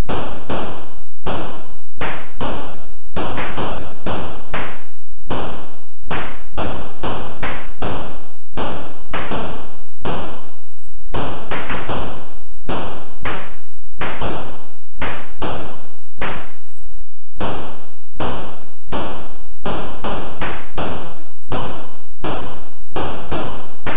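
Electronic video game shots crackle in quick bursts.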